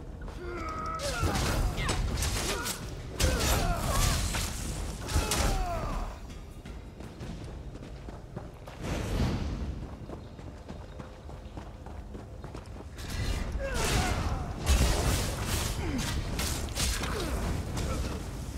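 Blades strike with sharp hits in a fight.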